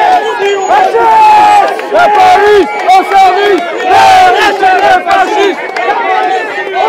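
A crowd of men and women shouts and chants loudly outdoors.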